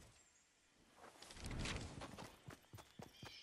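A wooden wall is built with a rapid clatter.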